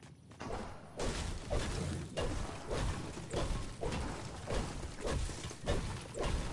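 A pickaxe strikes a wall again and again with heavy thuds.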